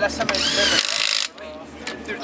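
An impact wrench whirs briefly.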